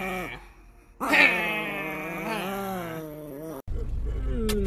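A small dog howls close by.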